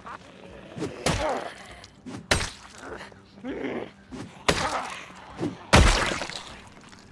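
A weapon strikes with hard, sharp blows several times.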